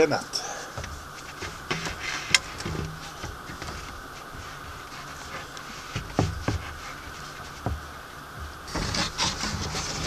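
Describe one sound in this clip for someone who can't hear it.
A wooden board knocks and scrapes against a railing.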